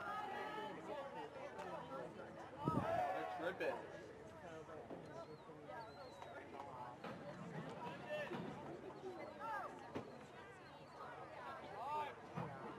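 Spectators close by talk and cheer.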